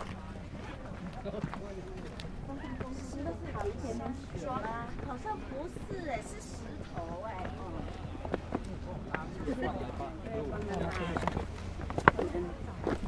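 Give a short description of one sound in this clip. Adults talk nearby in a group, outdoors.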